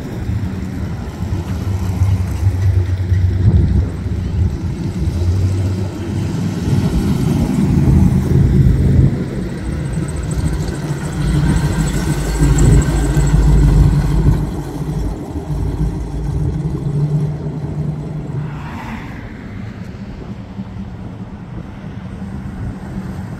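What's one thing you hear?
Hot rod engines rumble as they drive by one after another.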